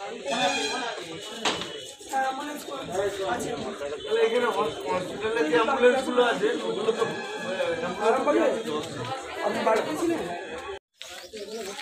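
Several men talk at once, close by and agitated.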